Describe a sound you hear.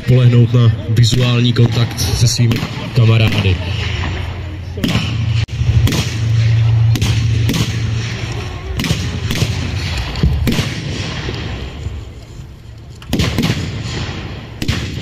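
Loud blasts boom again and again outdoors.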